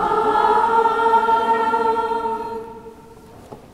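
A man sings a long, held chant in an echoing hall.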